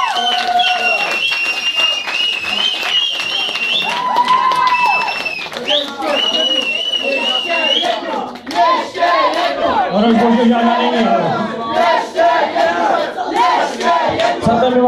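A rock band plays loudly through amplifiers in an echoing room.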